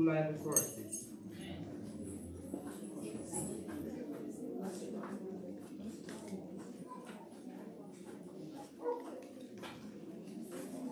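A crowd murmurs in an echoing hall.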